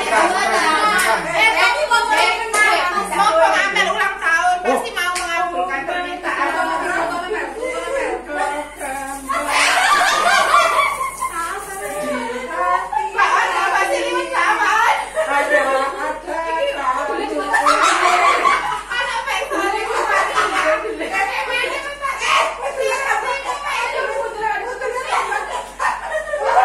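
Several women talk and laugh together close by.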